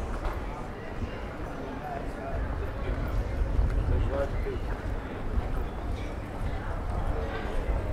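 Distant voices of passers-by murmur outdoors.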